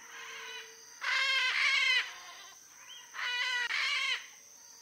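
A macaw squawks harshly in loud, repeated bursts.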